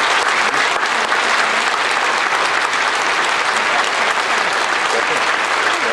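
A small choir of men and a woman sings together through microphones in a large echoing hall.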